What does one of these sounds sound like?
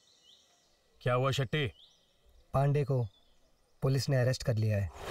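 A man speaks firmly and calmly close by.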